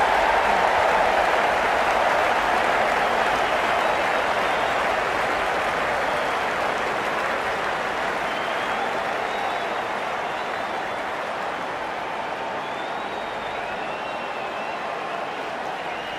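A large crowd roars steadily and slowly fades.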